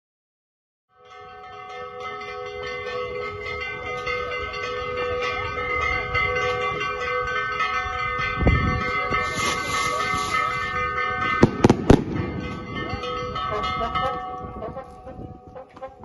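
A brass band plays a lively tune.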